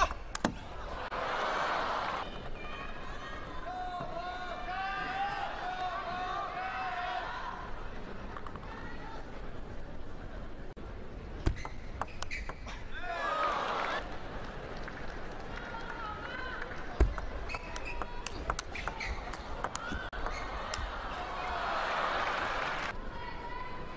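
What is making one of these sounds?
A crowd cheers and applauds in a large hall.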